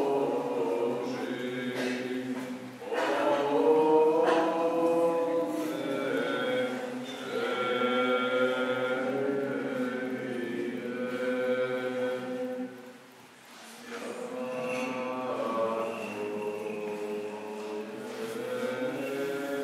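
A man chants slowly in a reverberant hall.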